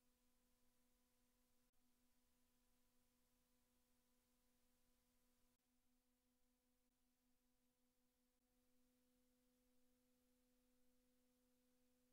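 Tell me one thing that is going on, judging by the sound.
A low, steady electronic tone hums, pulsing briefly midway.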